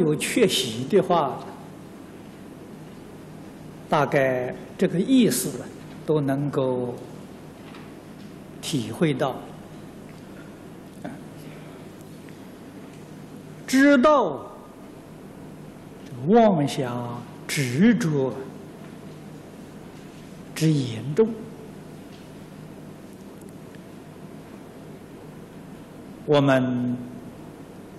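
An elderly man speaks slowly and calmly into a microphone, with long pauses between phrases.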